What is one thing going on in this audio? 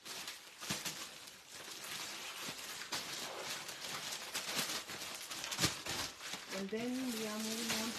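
Plastic wrapping rustles and crinkles close by.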